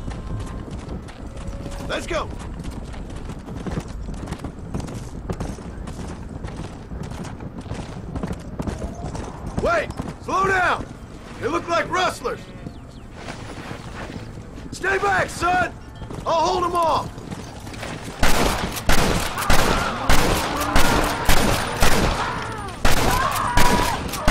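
A horse gallops with hooves pounding on dry ground.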